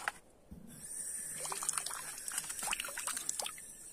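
Water splashes from a tap.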